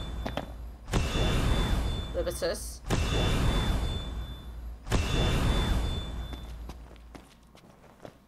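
Magic blasts roar in loud, rushing bursts.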